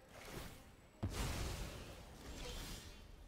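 A deep magical whoosh bursts and rumbles away.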